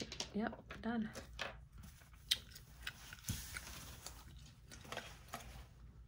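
A paper towel rustles and crinkles as it is folded.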